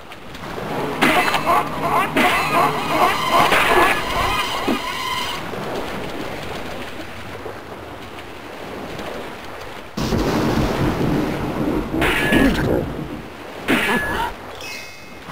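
A sword swings and strikes a creature with heavy hits.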